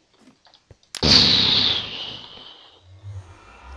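A portal flares to life with a sudden loud whoosh that fades away.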